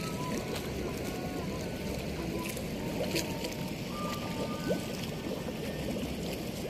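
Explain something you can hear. A fishing net drags and swishes through shallow water.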